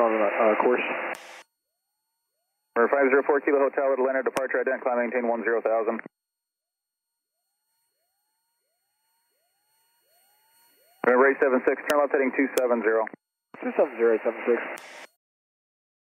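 A young man speaks calmly over a radio headset.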